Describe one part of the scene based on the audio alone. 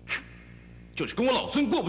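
A young man speaks out loudly with animation.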